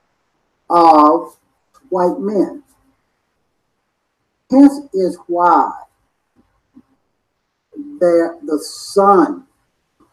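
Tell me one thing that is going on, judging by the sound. An older man speaks calmly in short phrases close to a microphone, with pauses between them.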